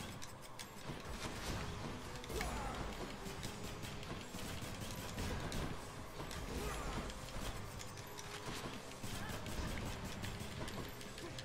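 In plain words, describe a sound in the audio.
Sharp sword slashes and magical impacts clash rapidly in a fast fight.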